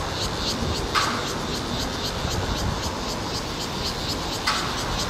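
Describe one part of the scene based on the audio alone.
Metal clanks faintly in the distance.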